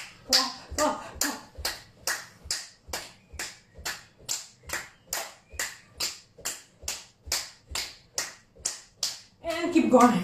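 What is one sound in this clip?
A woman claps her hands in a steady, quick rhythm.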